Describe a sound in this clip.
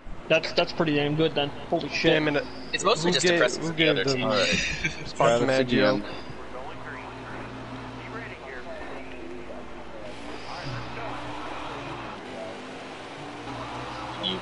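Race car engines drone.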